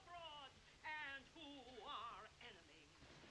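A man sings faintly in the distance.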